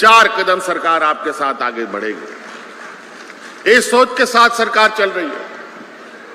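A man speaks forcefully into a microphone over loudspeakers.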